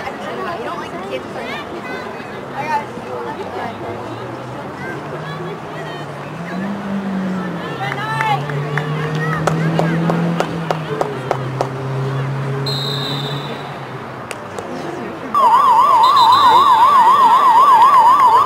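Young women call out to each other across an open field.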